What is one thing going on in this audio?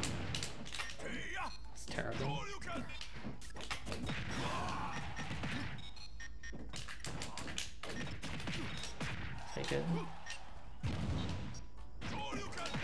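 Video game fighters hit each other with punchy impact sounds.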